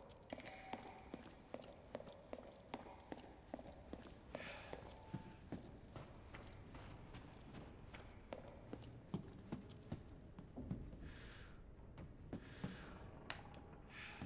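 Footsteps tap steadily on a hard floor in a large echoing hall.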